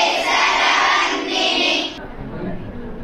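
Girls sing together in unison.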